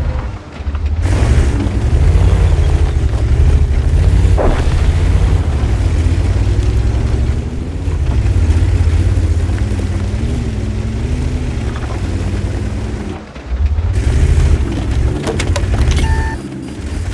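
Tank tracks clank and squeak over the ground.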